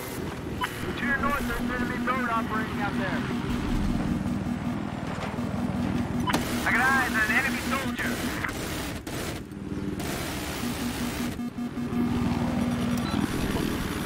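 A helicopter's gun fires in rapid bursts.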